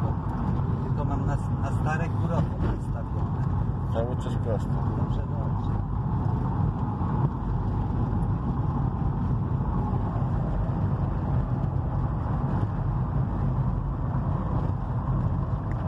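Tyres rumble on an asphalt road.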